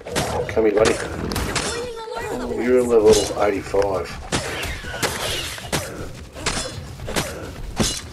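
A spear strikes a creature with sharp, repeated thuds.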